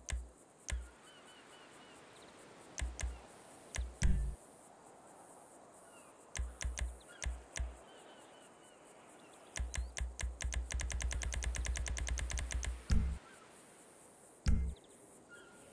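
Menu clicks tick quickly as selections move through a list.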